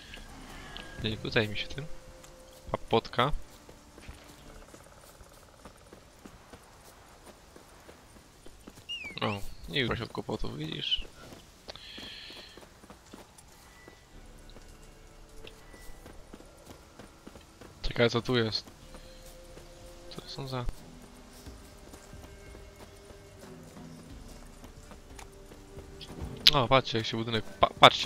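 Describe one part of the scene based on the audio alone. Footsteps run through rustling grass.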